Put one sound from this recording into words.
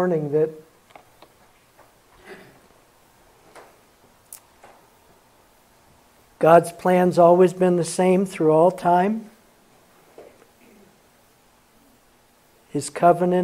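An elderly man speaks expressively into a lapel microphone, with pauses.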